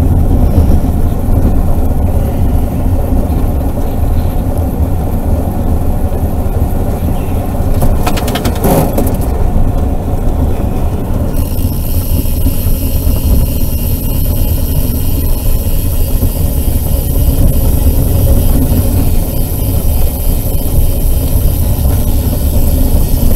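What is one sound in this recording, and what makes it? Wind rushes loudly and steadily against a moving rider's helmet.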